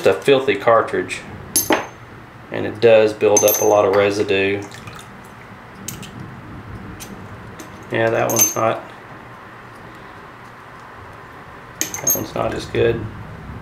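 Small metal parts clink against each other.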